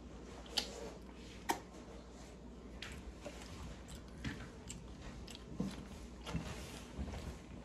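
A young woman chews food with wet mouth noises close to a microphone.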